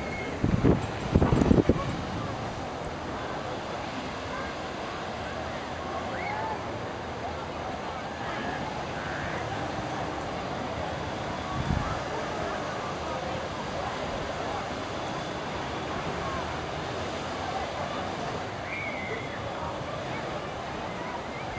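A crowd of people chatters and calls out in the distance outdoors.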